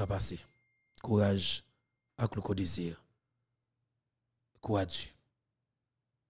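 A man speaks into a close microphone in short bursts with pauses.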